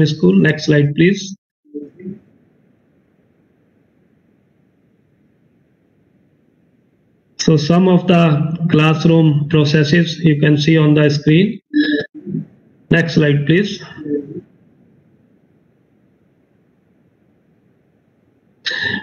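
A middle-aged man speaks calmly over an online call, pausing now and then.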